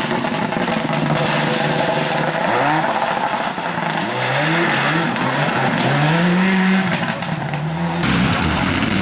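A rally car engine revs hard and rises in pitch through the gears as the car speeds away.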